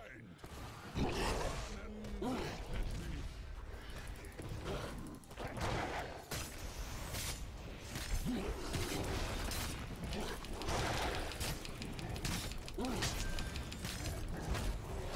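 Game spell effects whoosh and clash during a fight.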